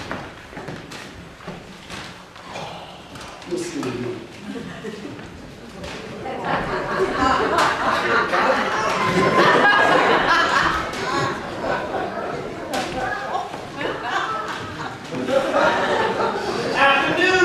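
Men speak loudly and call out in an echoing hall.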